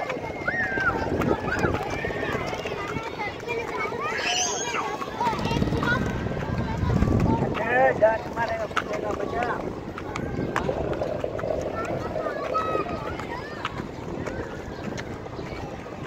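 Young girls chatter and call out close by.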